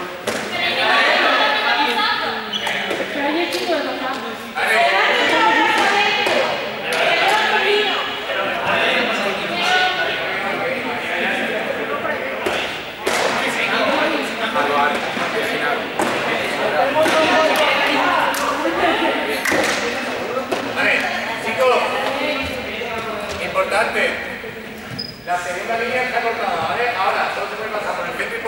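A crowd of young people chatter and shout in a large echoing sports hall.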